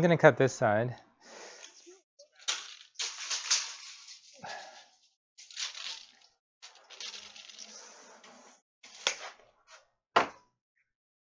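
A tape measure rattles as it is pulled out and snaps back.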